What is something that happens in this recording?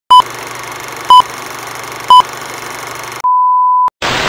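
A steady crackling hiss plays.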